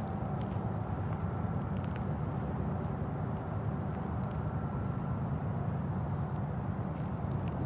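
Wind blows steadily outdoors, rumbling low and close.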